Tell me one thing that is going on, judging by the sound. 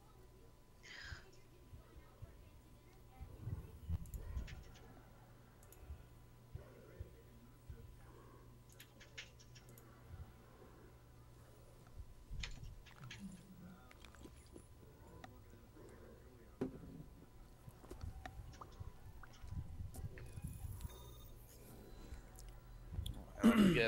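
A man speaks quietly into a microphone, close by.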